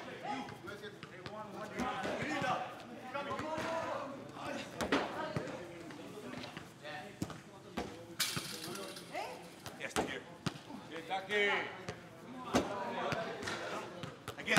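Young men call out to each other in a large indoor hall.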